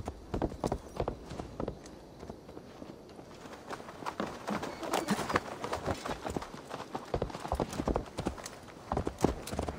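Horse hooves clop steadily on hard ground.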